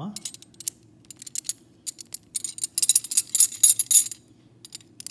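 Metal links clink and jingle as fingers handle a heavy chain.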